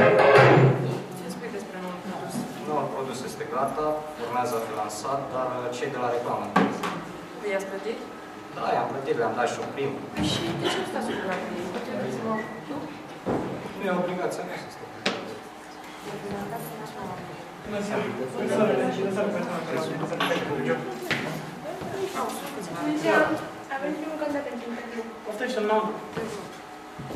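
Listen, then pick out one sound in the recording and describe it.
A young woman speaks into a microphone in an echoing room.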